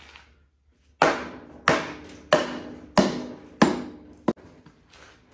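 A mallet knocks on metal several times.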